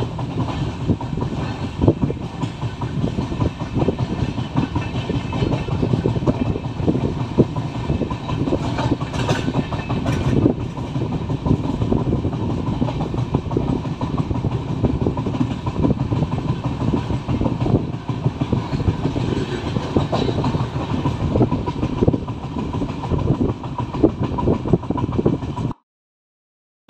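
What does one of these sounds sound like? Wind rushes past an open train window.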